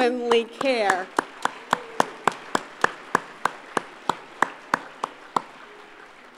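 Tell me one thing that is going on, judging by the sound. An older woman claps her hands steadily.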